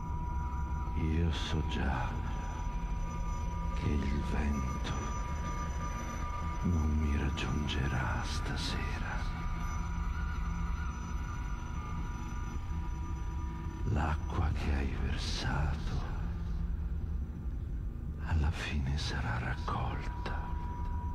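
A man speaks with pauses, heard through a microphone in an echoing room.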